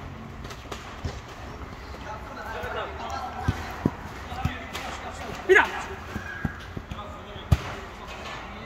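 A football is kicked on artificial turf.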